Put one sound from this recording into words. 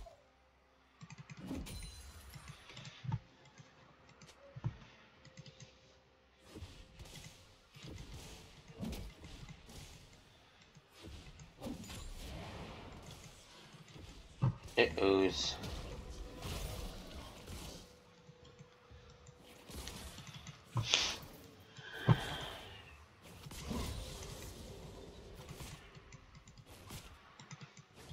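Fantasy battle sound effects of magic spells and blows burst and clash.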